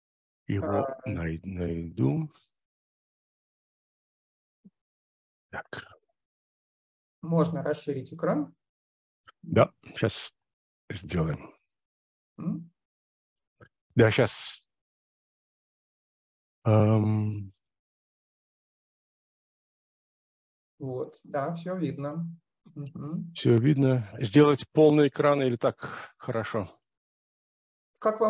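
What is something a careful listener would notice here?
A man speaks over an online call in short bursts with pauses.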